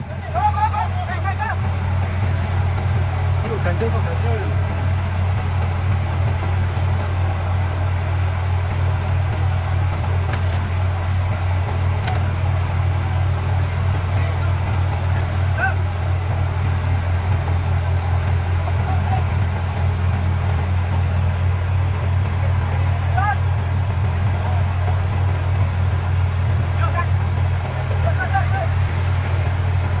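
A large diesel engine idles with a steady, low rumble.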